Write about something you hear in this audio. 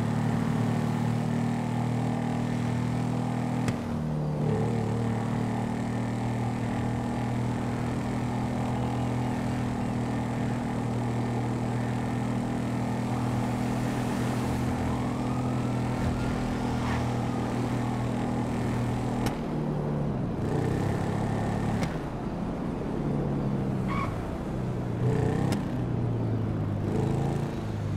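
A motorcycle engine drones steadily at speed, its pitch shifting up and down.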